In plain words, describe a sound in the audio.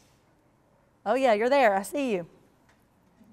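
A young woman speaks briefly through a microphone.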